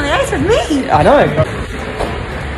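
A woman exclaims excitedly close by.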